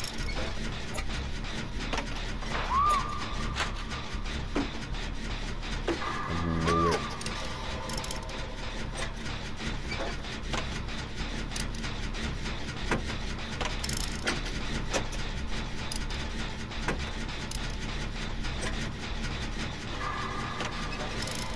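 Metal parts of an engine clatter and click as they are worked on by hand.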